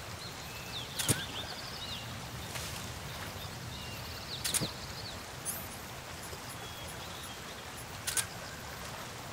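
Short electronic menu chimes sound several times.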